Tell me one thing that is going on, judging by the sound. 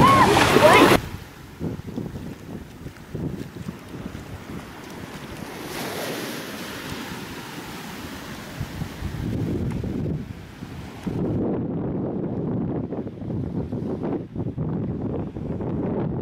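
Small waves wash gently over sand.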